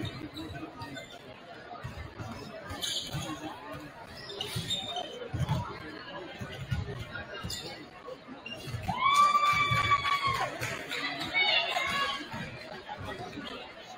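Basketballs bounce with dull thumps on a wooden floor.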